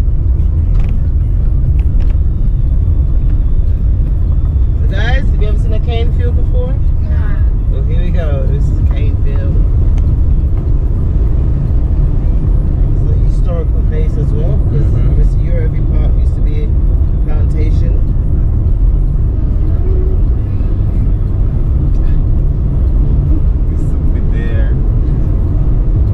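A car rumbles steadily along a rough road, heard from inside.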